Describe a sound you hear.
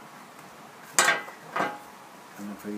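A wooden tool is set down on a bench with a knock.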